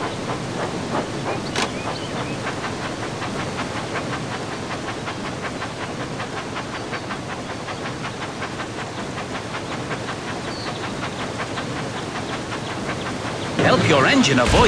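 A toy steam train chugs along steadily in a rapid rhythm.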